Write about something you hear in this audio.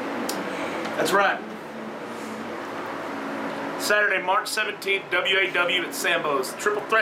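A second man speaks calmly close by.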